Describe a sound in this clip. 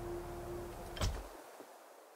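A menu button clicks once.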